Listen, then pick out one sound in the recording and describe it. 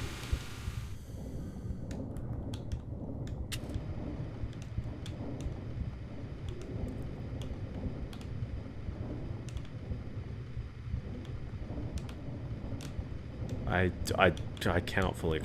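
A low, muffled underwater rumble goes on steadily.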